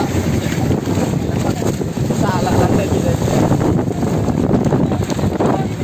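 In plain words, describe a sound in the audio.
Wind blows loudly across open water outdoors.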